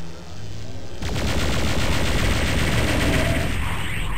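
A plasma gun fires rapid buzzing shots.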